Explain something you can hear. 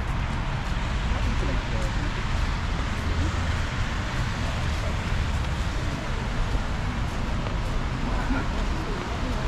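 Footsteps crunch on snow.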